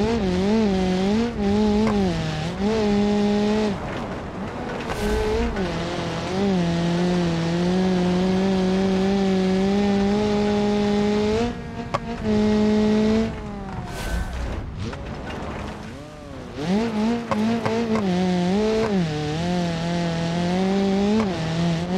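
Tyres skid and crunch over loose dirt.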